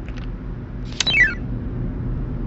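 A puzzle game sound effect chimes as pieces clear.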